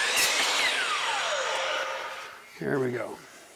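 A power saw whines and winds down.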